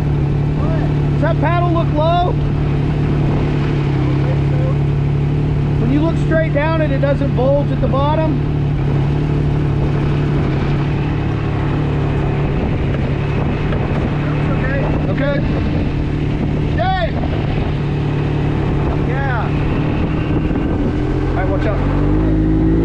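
A buggy engine idles with a steady low rumble.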